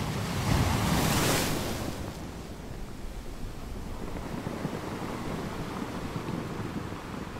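Waves crash and roll onto rocks outdoors.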